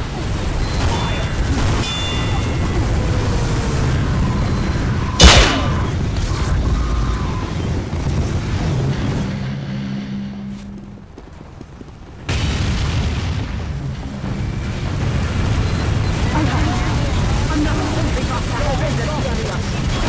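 Guns fire in rapid bursts amid a noisy battle.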